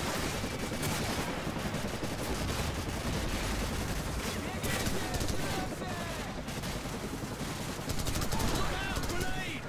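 Gunshots crack nearby in quick bursts.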